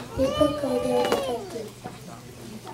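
Children sing into microphones on a stage.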